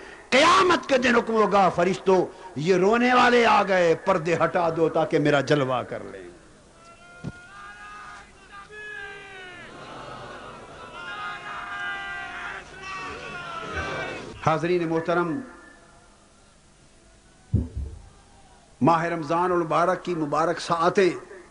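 A man preaches loudly and passionately through a loudspeaker with echo.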